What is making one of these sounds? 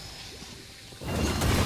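Magic spell effects whoosh and burst.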